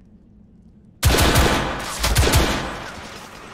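Gunshots fire in quick succession and echo.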